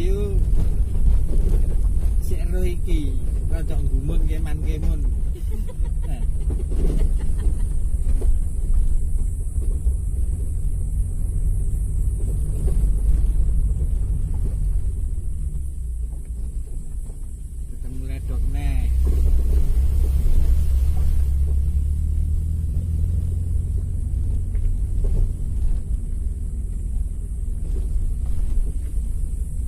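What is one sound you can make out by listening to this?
A vehicle engine rumbles steadily as it drives along a road.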